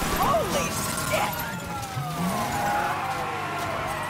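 Glass shatters as a car smashes through a window.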